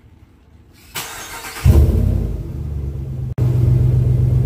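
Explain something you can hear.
A truck engine cranks and roars to life.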